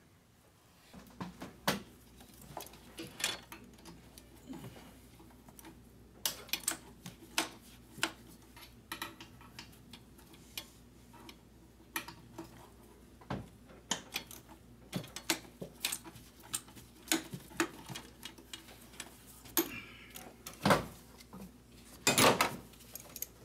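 Metal tools click and clink against engine parts.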